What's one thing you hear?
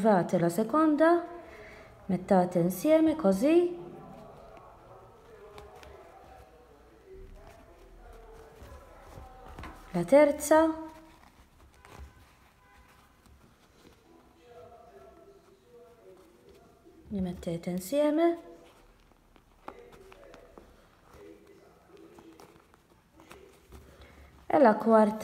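Fabric rustles softly.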